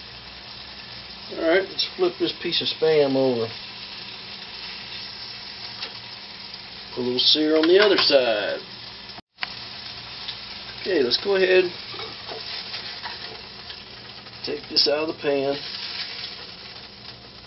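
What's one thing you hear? Meat sizzles in a frying pan.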